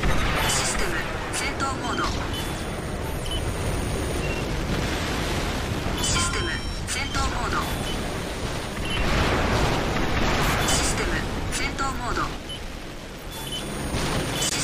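A video game mech's boosters roar.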